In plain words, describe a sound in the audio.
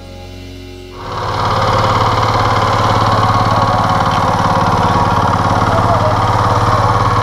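A small engine runs loudly with a fast, steady chugging.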